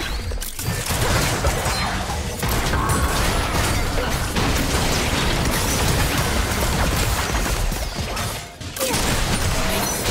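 Game weapons clash and thump in quick bursts.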